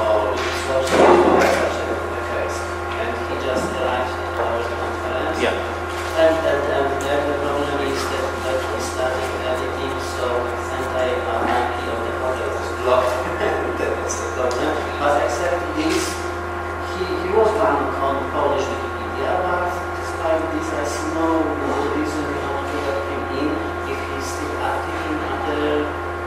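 A projector fan hums steadily.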